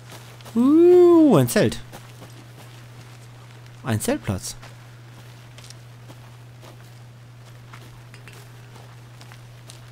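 Footsteps crunch on a leafy forest floor.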